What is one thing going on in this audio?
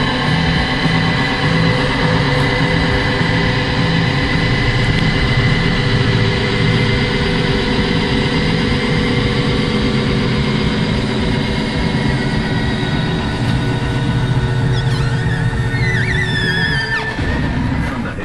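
A large engine idles with a steady, throbbing rumble.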